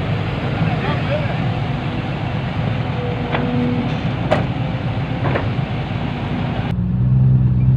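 An excavator engine rumbles steadily.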